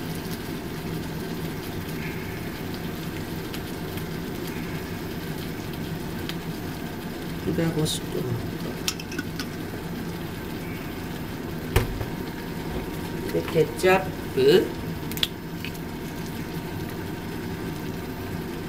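Sauce squirts from a bottle into a pan.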